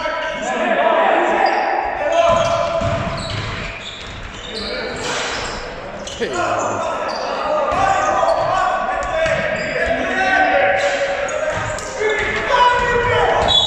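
Young players shout to each other.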